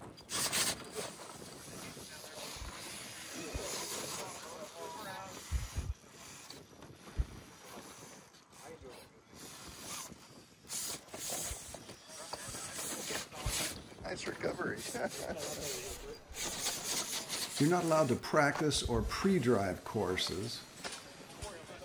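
Plastic tyres scrape and grind on rock.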